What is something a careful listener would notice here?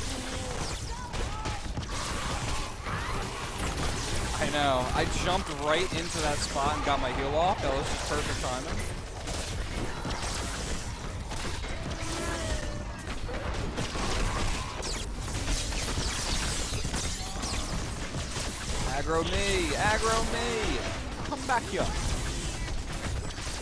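Gunfire and explosions from a video game rattle on throughout.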